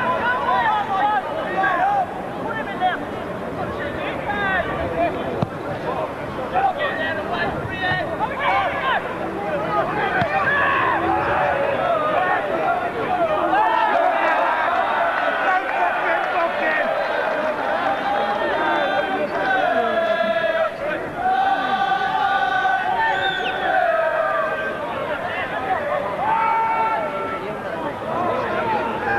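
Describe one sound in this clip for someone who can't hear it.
A football crowd shouts and chants outdoors.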